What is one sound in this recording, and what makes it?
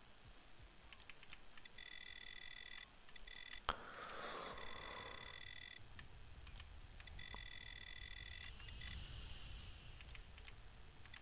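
Soft menu clicks tick quickly as a setting is adjusted.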